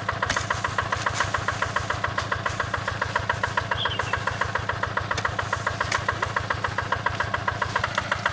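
A hoe chops into soil.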